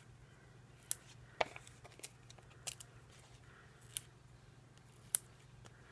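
Paper crinkles and rustles up close.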